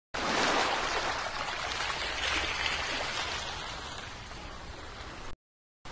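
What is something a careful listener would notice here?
Gentle waves wash onto a sandy shore.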